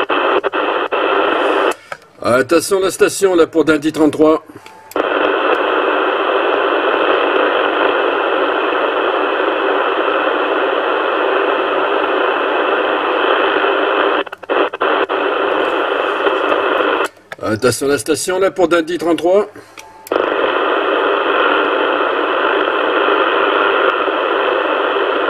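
Radio static hisses steadily from a loudspeaker.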